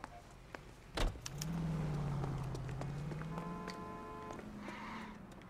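A car drives past on the street.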